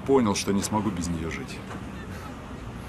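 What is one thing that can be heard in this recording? A young man speaks calmly up close.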